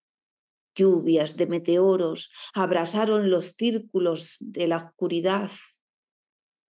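A woman speaks with animation into a microphone, heard as if over an online call.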